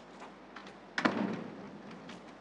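A door thuds shut.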